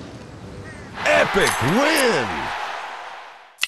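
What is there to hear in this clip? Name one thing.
A cheerful victory jingle plays with sliding tones.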